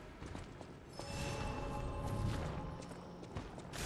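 A magical chime shimmers as energy is gathered.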